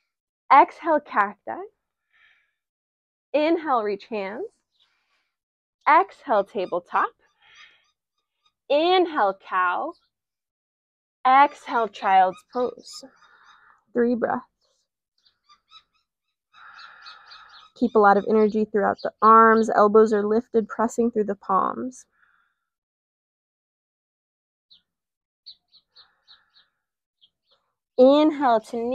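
A young woman speaks calmly and clearly into a close microphone, in short phrases with pauses.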